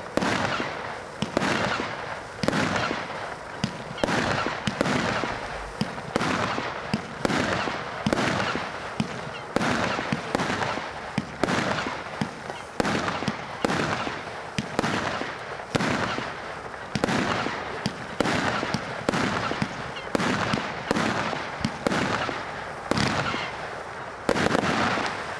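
Fireworks burst with sharp bangs, one after another.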